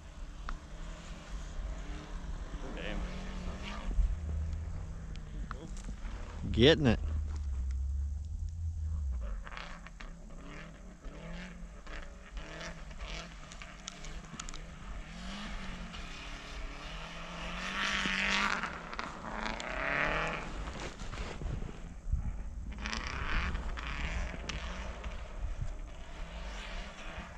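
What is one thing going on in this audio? A rally car engine revs hard in the distance, rising and falling.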